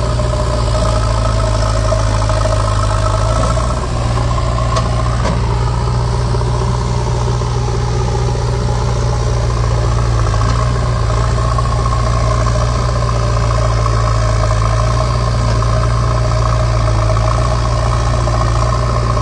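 A backhoe loader's diesel engine rumbles steadily close by.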